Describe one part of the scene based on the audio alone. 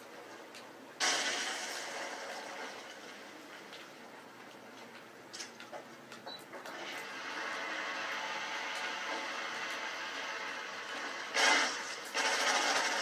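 Gunfire from a video game plays through a television speaker.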